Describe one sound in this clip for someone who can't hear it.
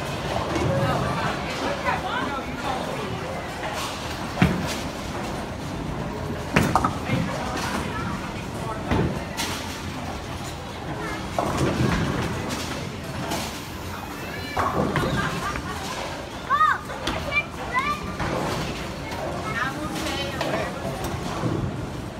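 Bowling balls rumble down the lanes.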